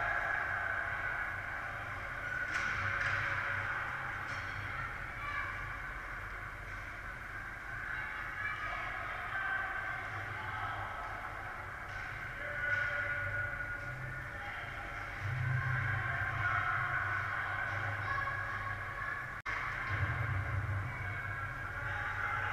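Young players shout and call out across the rink.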